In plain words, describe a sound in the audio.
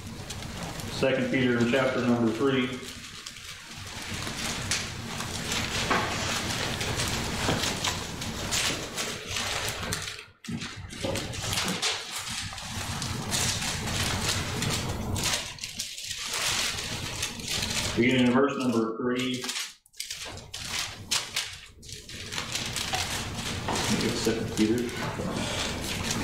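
A man reads aloud through a microphone in a hall.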